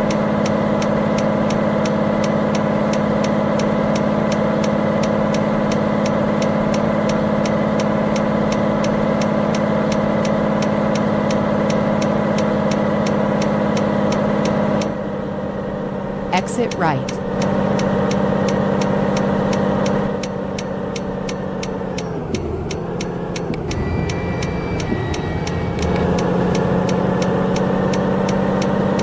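A truck engine hums steadily, dropping and rising in pitch as the truck changes speed.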